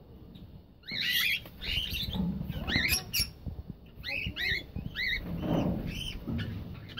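Cockatiels chirp and whistle close by in short, repeated calls.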